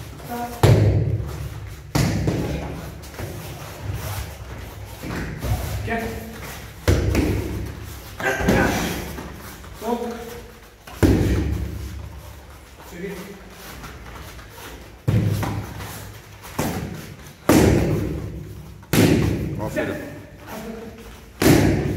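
Kicks and punches thud hard against a padded shield, echoing in a large room.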